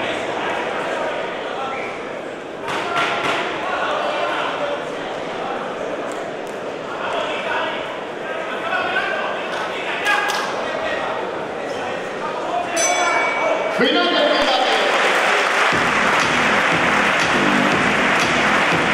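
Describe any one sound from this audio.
A crowd of spectators shouts and chatters in a large echoing hall.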